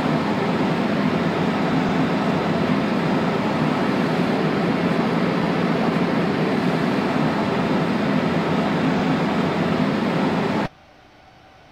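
A train rumbles steadily along the tracks, then the sound drops away abruptly.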